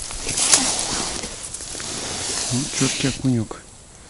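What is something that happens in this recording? Crisp snow crunches under a hand.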